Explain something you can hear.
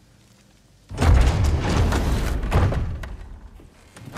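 A heavy wooden door rumbles open.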